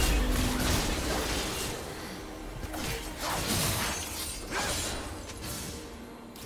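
Magic spells whoosh and burst in a game fight.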